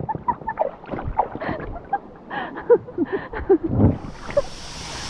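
A young woman talks and laughs cheerfully close by.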